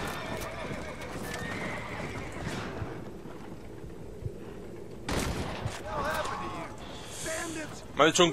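A horse-drawn stagecoach rattles along.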